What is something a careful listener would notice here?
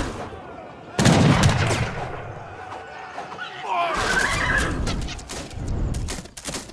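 Explosions boom as buildings burst into flames.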